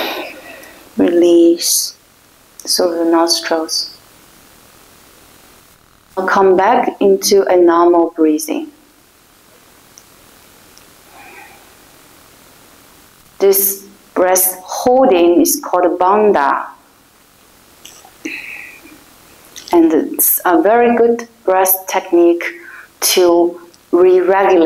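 A young woman speaks calmly and slowly, close by.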